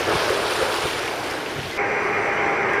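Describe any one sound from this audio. Small waves splash against a stone embankment.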